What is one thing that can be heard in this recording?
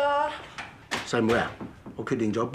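A middle-aged man speaks in surprise close by.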